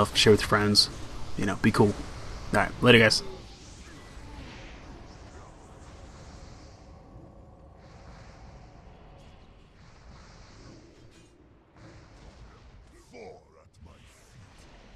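Spell effects crackle and boom as a game battle rages.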